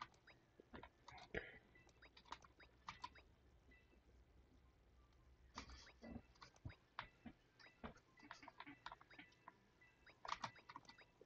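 Short electronic menu blips and clicks sound as options change.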